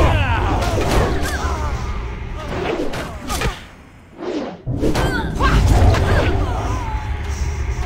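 Weapons strike in quick bursts of combat.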